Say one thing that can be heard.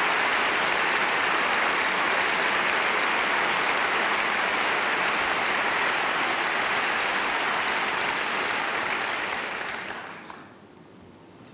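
A large audience applauds loudly in a big echoing hall.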